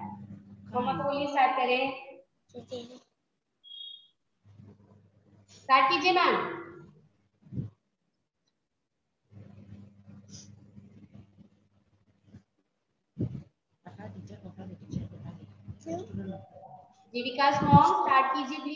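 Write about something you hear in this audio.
A woman speaks with animation over an online call, in short bursts.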